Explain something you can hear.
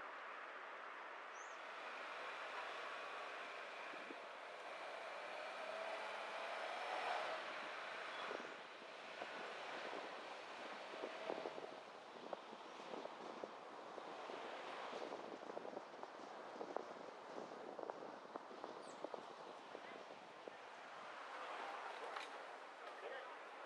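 A car drives along a street with a steady rumble of tyres on the road.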